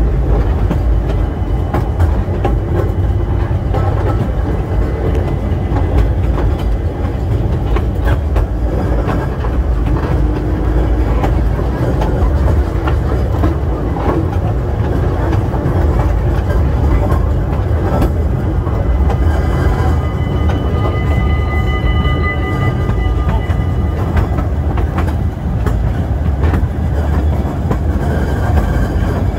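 A small train rumbles and clatters steadily along its track.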